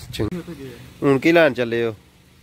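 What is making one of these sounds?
A young man speaks loudly close by.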